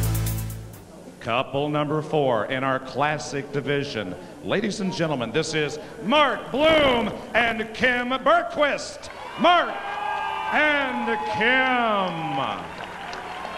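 A man announces with animation over a loudspeaker in a large echoing hall.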